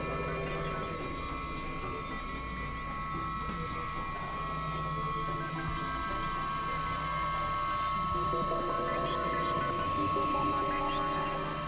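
A synthesizer plays steady droning electronic tones with shifting notes.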